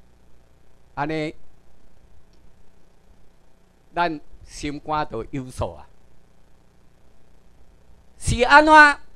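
A middle-aged man speaks into a microphone in bursts, heard through a loudspeaker in a room.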